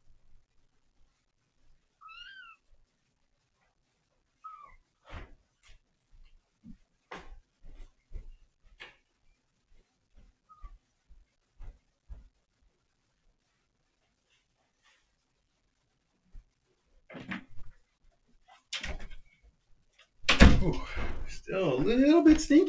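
A cat meows softly.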